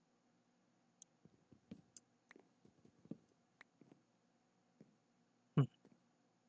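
An axe chops at wood with quick knocks.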